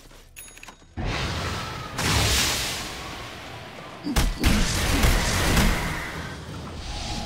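An icy spell bursts with loud crackling blasts.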